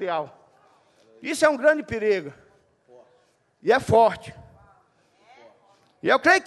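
A man preaches with animation into a microphone, in short bursts with pauses.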